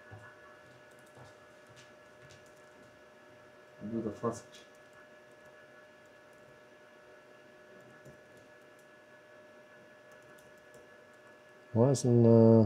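Fingers tap on a laptop keyboard.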